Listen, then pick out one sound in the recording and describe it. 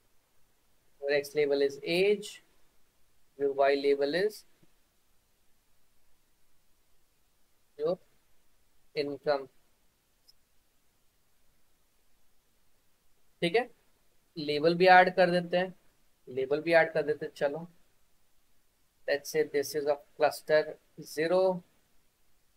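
A young man speaks calmly in short phrases over an online call.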